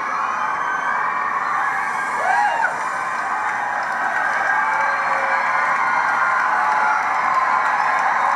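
A loud crowd cheers and screams through a loudspeaker.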